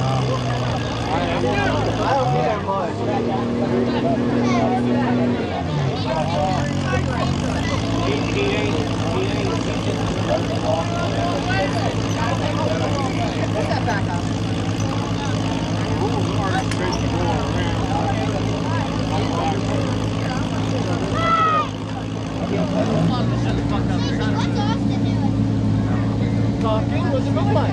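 A truck engine idles and revs loudly nearby.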